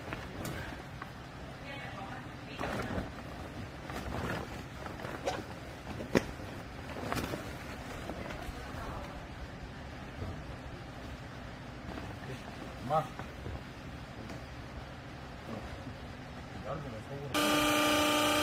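Clothes rustle as they are pushed into a machine.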